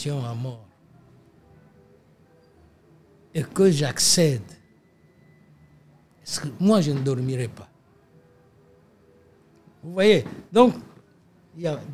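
An elderly man speaks slowly and deliberately into a nearby microphone, with long pauses.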